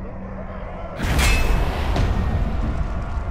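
A deep whooshing boom sounds.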